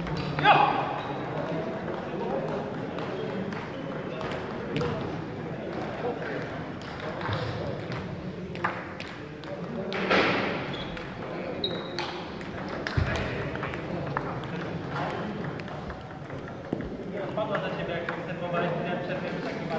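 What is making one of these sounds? Distant voices murmur in a large echoing hall.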